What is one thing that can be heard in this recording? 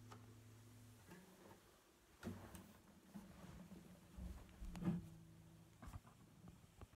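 Guitar strings are handled and knocked, with soft thumps close by.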